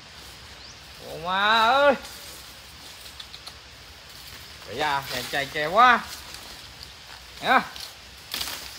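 Parrots squawk loudly nearby in short harsh calls.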